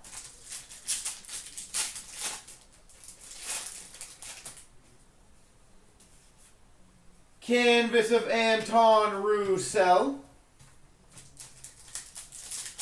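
Trading cards rustle and click as they are handled close by.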